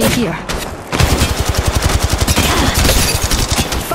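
A rapid-fire gun shoots in a fast, steady stream of shots.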